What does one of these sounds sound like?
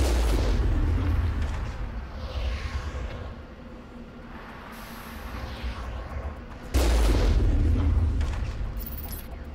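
A heavy cannon fires with a deep, booming blast that rolls away.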